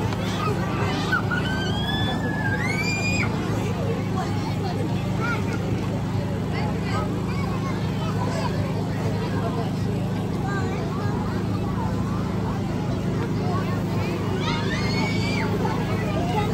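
Children squeal in high voices.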